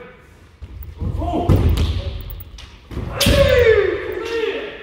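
Fencers shout loud, drawn-out cries that echo around a large hall.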